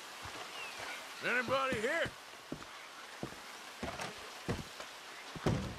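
Footsteps thud on wooden steps.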